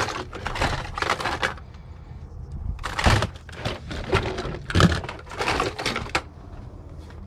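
Plastic toys rattle and clatter as hands rummage through them.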